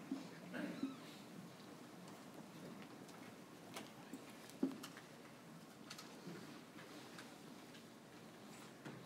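An older man speaks calmly into a microphone in a large echoing room.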